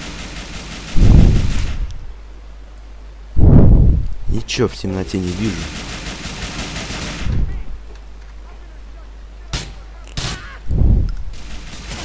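Gunshots boom loudly, several times.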